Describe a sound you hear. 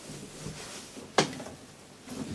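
Elevator buttons click as a finger presses them.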